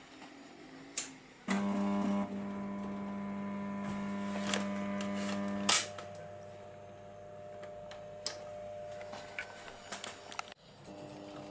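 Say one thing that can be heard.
Preheat starters click as fluorescent tubes flicker on.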